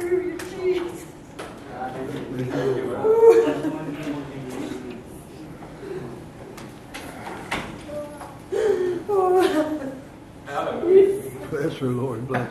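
An elderly man speaks steadily into a microphone in a room with some echo.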